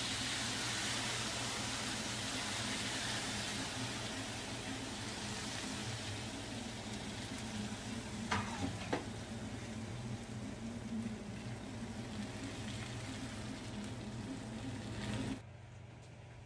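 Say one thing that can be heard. Hot syrup hisses and sizzles on a tray of pastry.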